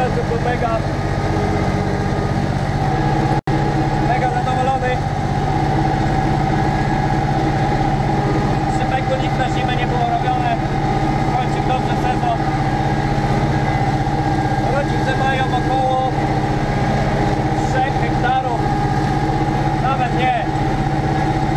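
A tractor engine drones steadily, heard from inside the cab.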